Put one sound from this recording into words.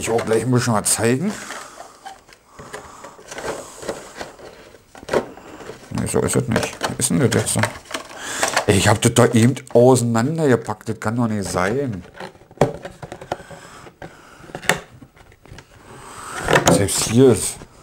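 Clear plastic packaging crinkles and crackles in hands.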